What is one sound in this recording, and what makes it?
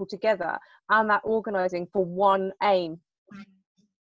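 A young woman speaks with animation over an online call.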